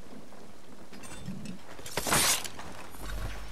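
Quick footsteps thud on wooden boards.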